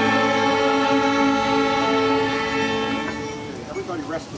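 A group of young violinists plays a tune.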